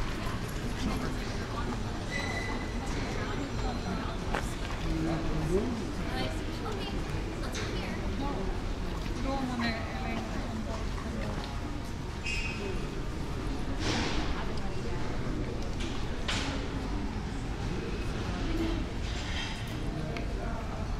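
Voices of passers-by murmur nearby outdoors.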